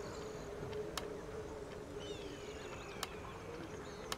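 Soft interface clicks tick now and then.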